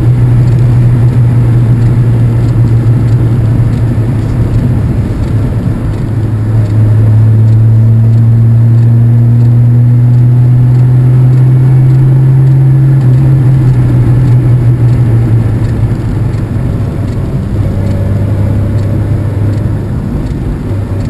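Wind buffets loudly against the rider.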